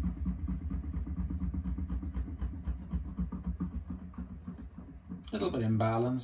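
A washing machine drum turns with a low, pulsing hum.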